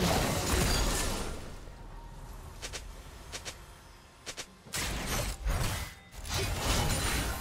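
Game spell effects burst and crackle.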